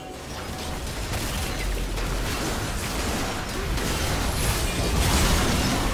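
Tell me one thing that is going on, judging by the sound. Game spell effects crackle and blast in a fast fight.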